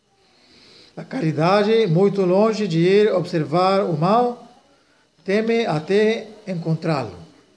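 An elderly man speaks clearly and with expression, close by.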